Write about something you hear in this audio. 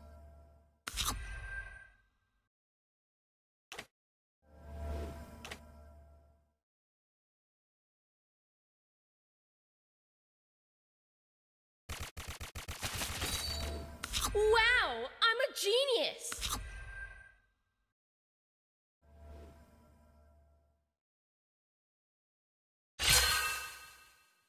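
Video game sound effects whoosh and chime in short bursts.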